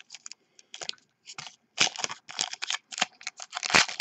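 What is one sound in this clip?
A foil wrapper is torn open.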